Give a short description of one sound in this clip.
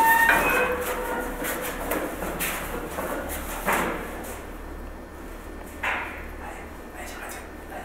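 Footsteps thud on hard stairs.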